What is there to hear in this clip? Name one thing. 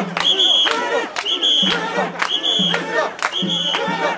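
People clap their hands.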